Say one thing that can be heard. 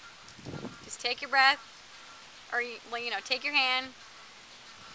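A young woman speaks calmly, close to the microphone.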